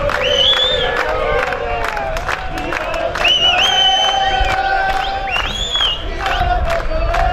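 Whistles shrill repeatedly from a crowd.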